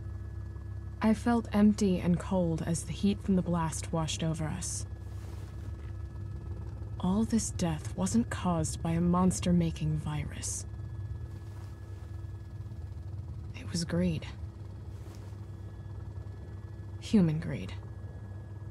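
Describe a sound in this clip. A young woman speaks calmly and quietly, close by.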